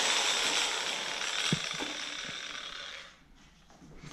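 An angle grinder whirs and slowly winds down.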